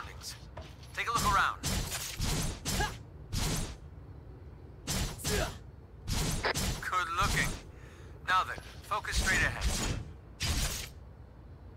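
Heavy blade swings whoosh and clang in a game.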